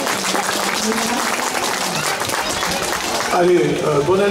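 People clap their hands in applause.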